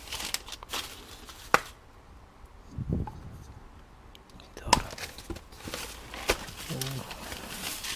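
Packages clatter and rustle as a hand rummages through a pile.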